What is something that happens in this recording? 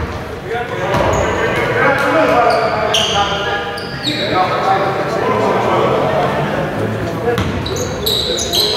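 Men call out and shout to each other across the court.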